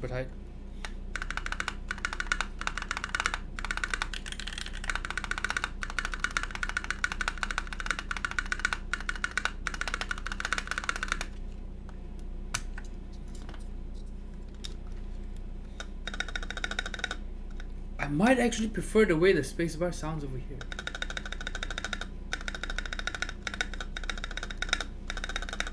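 Keyboard keys clack rapidly under fast typing.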